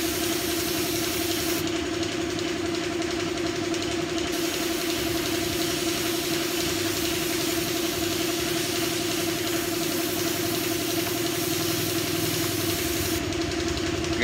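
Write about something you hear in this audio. A paint spray gun hisses steadily.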